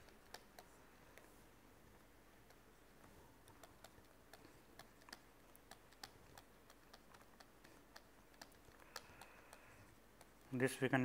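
A pen taps and scratches on a writing tablet.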